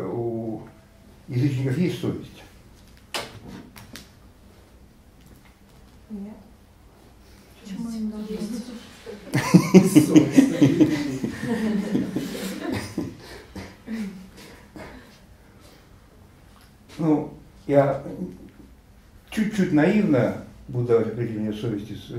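An elderly man speaks calmly and with pauses, close by.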